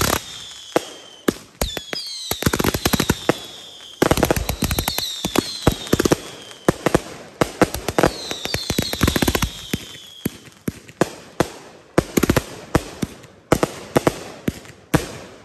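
Fireworks crackle and bang loudly outdoors.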